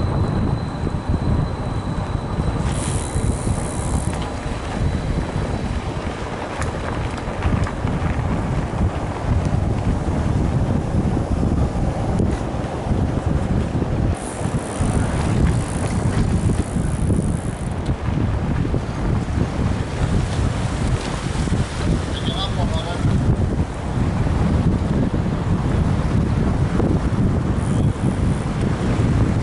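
Bicycle tyres rumble and crunch over paved ground and sand.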